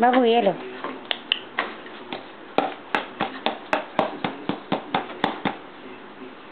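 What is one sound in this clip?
A toddler taps and clacks a plastic toy.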